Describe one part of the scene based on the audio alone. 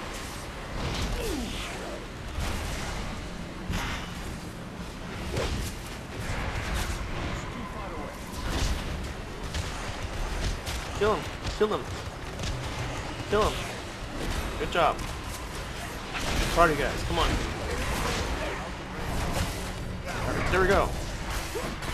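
Magic spells crackle and whoosh in quick bursts.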